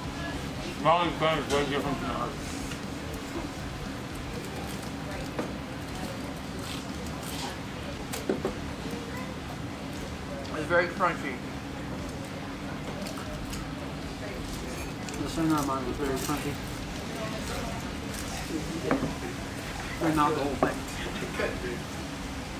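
Men talk briefly in short bursts, close by.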